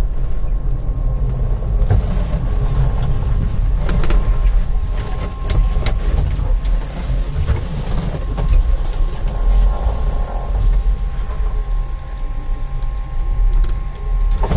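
A heavy truck engine rumbles steadily from inside the cab.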